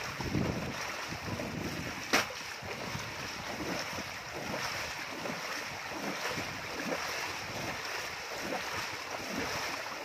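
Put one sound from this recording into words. A wicker basket sloshes through rushing water.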